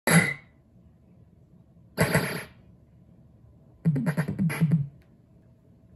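A pinball machine plays short bursts of electronic sound effects.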